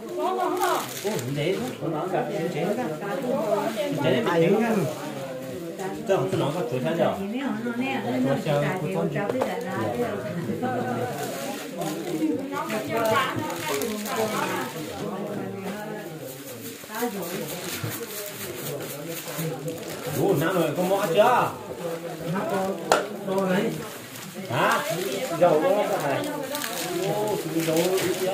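A knife chops and scrapes meat on a wooden block.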